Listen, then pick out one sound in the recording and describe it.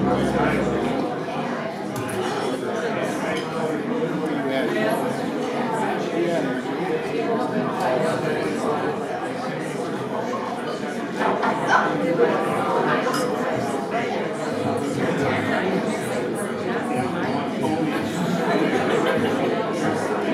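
Young men talk among themselves in a room.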